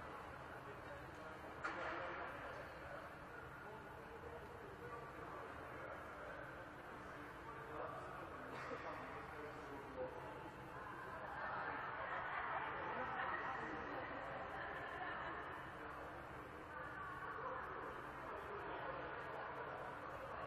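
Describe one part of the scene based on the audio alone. Young players chatter and call out across a large echoing hall.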